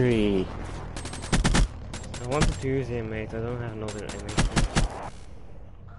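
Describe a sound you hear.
Rapid gunshots fire in short bursts.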